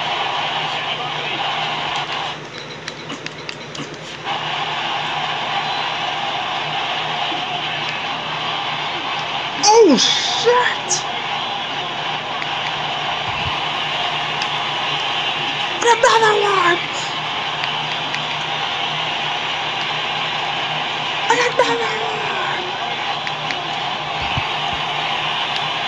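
A crowd roars steadily from a television.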